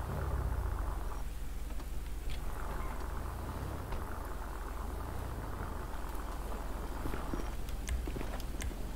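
An SUV engine hums as it drives along a road.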